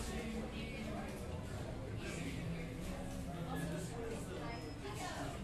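Several people chatter in a low murmur nearby.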